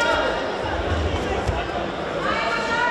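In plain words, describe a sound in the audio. A judoka is thrown onto a judo mat with a thud.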